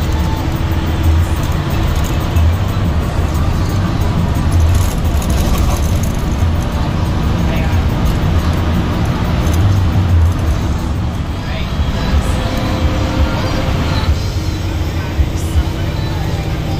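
Tyres roll over the road with a constant rush.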